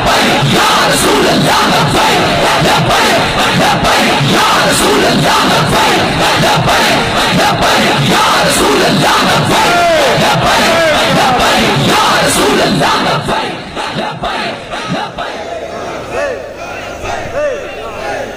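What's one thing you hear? A man speaks forcefully into a microphone through loudspeakers in a large echoing space.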